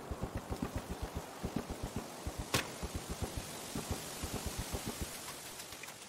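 Footsteps thud on hollow wooden boards.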